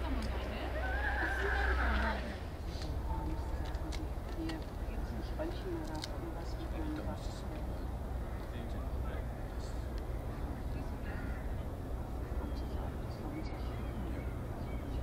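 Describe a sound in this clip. A ferry's engine rumbles low and steady far off across the water.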